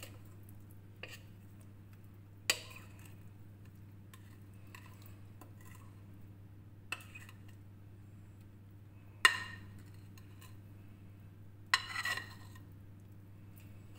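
A thick batter plops softly into a glass dish.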